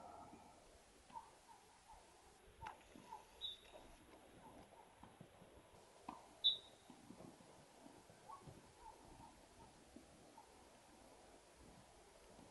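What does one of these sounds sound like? Soccer balls thud softly as players dribble and tap them across artificial turf.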